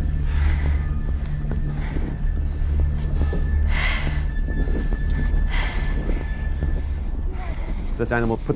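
Wind blusters over open water.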